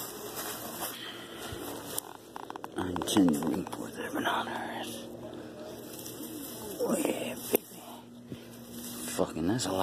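Feet rustle through grass.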